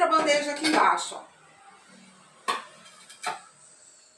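A glass vase clinks as it is set down on a tray.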